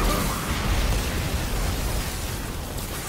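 Lightning crackles and booms with a deep rumble.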